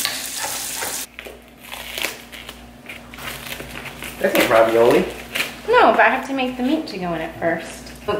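Plastic wrap crinkles as it is handled.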